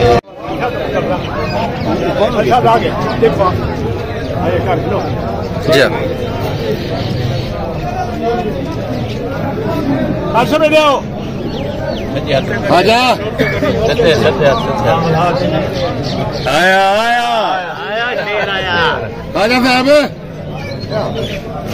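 Several men talk close by, outdoors.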